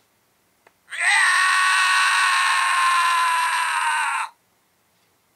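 A toy belt plays a loud electronic jingle through a small tinny speaker.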